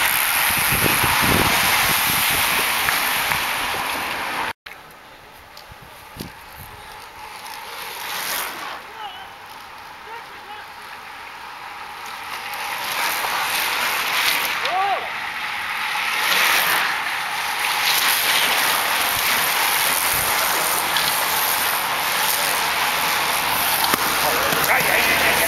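A group of road racing bicycles whirs past on asphalt.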